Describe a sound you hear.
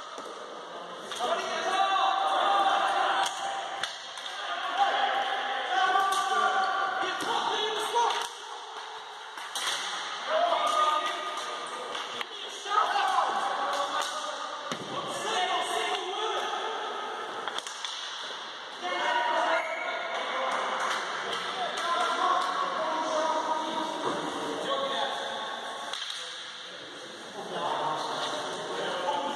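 Players' shoes squeak and thud on the court in a large echoing hall.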